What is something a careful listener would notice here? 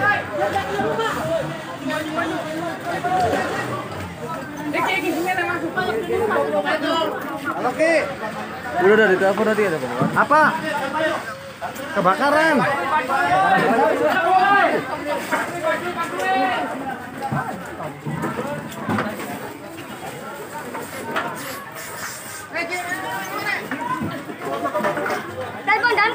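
A crowd of men shout and talk excitedly nearby.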